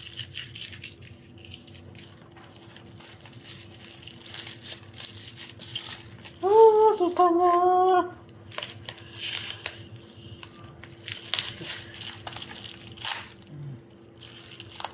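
Plastic bubble wrap crinkles and rustles in a person's hands.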